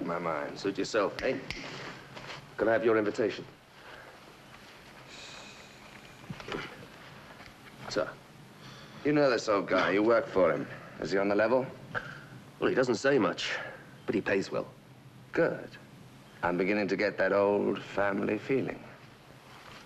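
A man speaks in a tense, low voice close by.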